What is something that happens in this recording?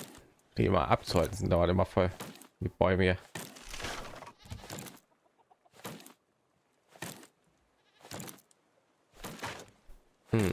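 An axe chops into a tree trunk with dull thuds.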